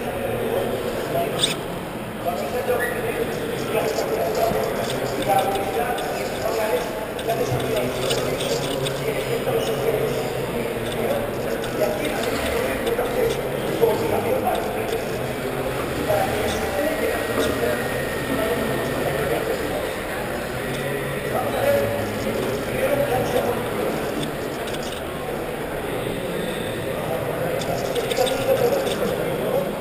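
Indistinct voices of people murmur and echo in a large hall.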